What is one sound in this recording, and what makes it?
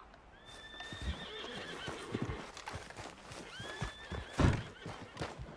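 Footsteps crunch quickly over dirt and grass.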